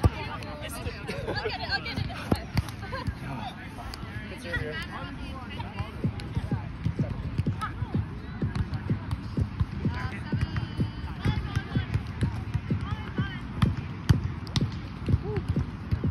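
Young men and women talk and call out across an open field.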